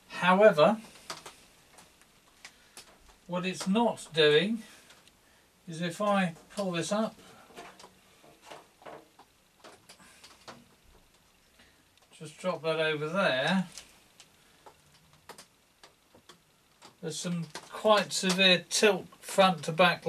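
An older man talks calmly close by, in short bursts with pauses.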